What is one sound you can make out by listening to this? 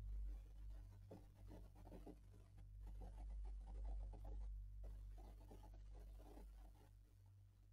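A man talks quietly into a close microphone.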